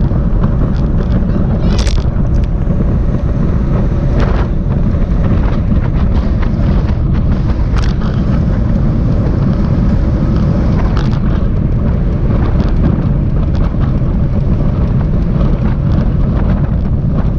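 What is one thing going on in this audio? Wind rushes loudly past the microphone outdoors.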